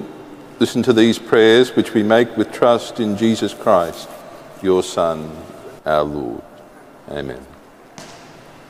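A man speaks slowly into a microphone, his voice echoing through a large hall.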